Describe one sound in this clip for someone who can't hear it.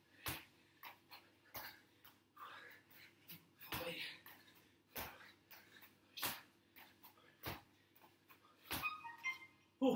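Sneakers land with two-footed thuds on a tiled floor.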